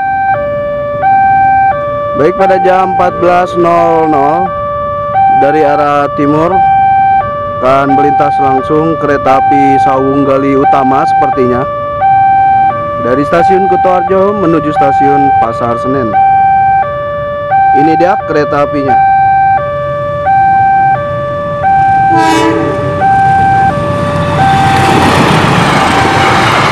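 A level-crossing bell rings steadily in an alternating two-tone pattern.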